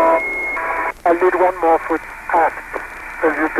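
A man speaks briefly over a crackly, thin radio link.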